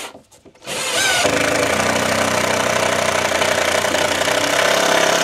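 A cordless drill whirs steadily and loudly up close.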